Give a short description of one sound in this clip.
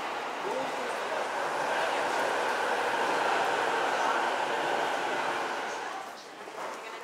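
A train rolls along a platform with a steady rumble.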